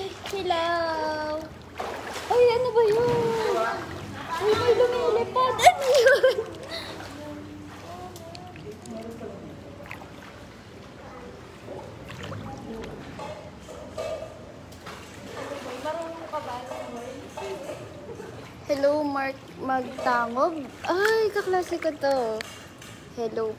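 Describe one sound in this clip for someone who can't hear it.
Water splashes and laps in a pool.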